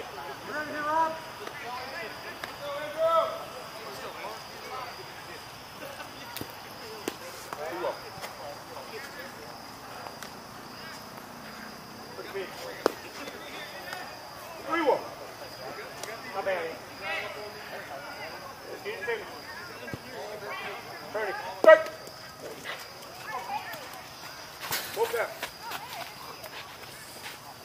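Men talk and call out across an open outdoor field.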